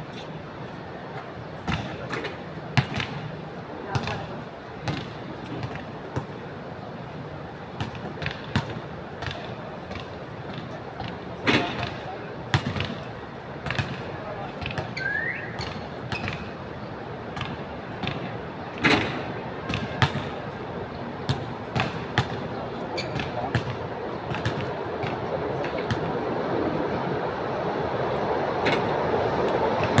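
Basketballs bounce with sharp thuds on a hard outdoor court.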